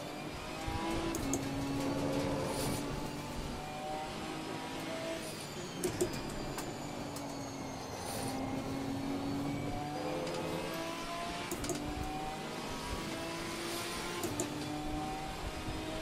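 Rain patters steadily on a windscreen.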